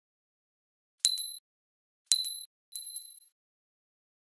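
A glass ornament clinks brightly as it bounces.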